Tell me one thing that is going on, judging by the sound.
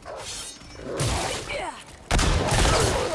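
A pistol fires loudly.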